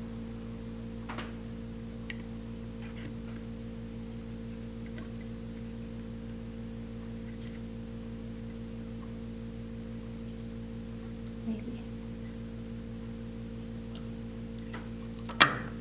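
Small wires rustle and click as fingers adjust them.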